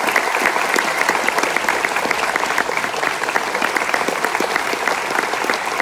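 A person claps hands close by.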